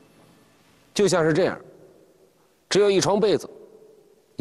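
A man speaks calmly and clearly into a microphone, in short phrases.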